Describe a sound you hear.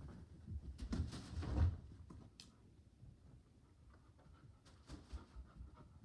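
A dog's paws thump and rustle inside a plastic play tunnel.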